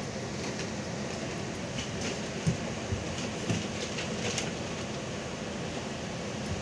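A bus engine rumbles steadily from inside.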